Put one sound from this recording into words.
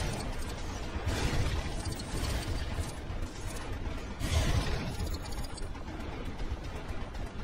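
Energy beams zap and whoosh repeatedly.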